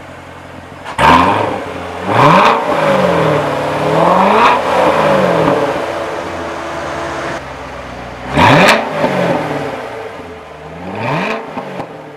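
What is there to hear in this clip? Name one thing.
A sports car engine revs hard several times and falls back.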